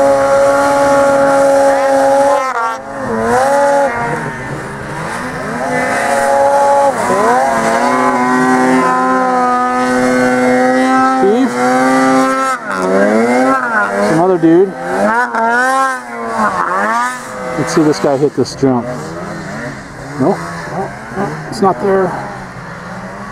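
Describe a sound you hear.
A snowmobile engine revs hard through deep snow.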